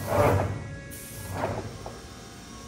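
A hand knocks on a truck's metal door.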